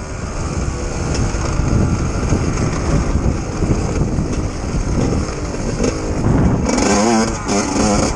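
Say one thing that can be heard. A dirt bike engine revs and roars up close.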